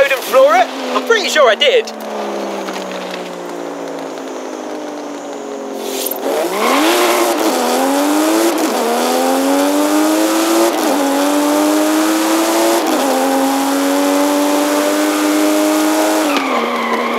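A car engine idles, then revs hard and climbs through the gears.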